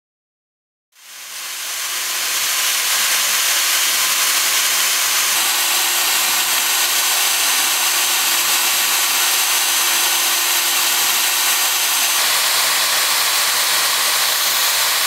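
A router bit whines steadily as it carves into foam.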